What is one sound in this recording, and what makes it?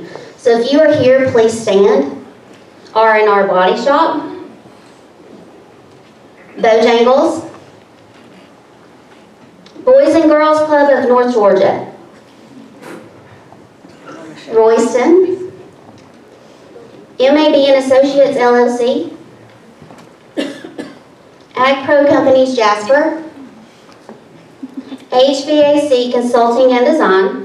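A woman sings into a microphone, her voice carried through loudspeakers in a large room.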